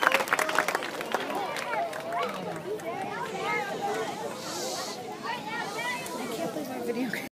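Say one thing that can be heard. Men and women in a crowd chatter nearby.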